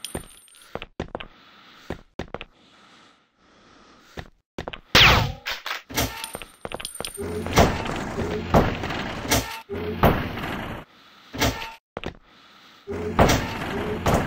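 A gun fires repeatedly in short bursts.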